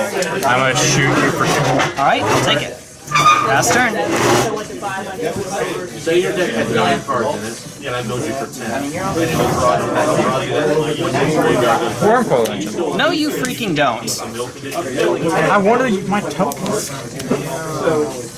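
Cards tap softly onto a table.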